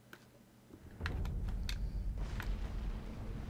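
A fire roars and crackles outdoors.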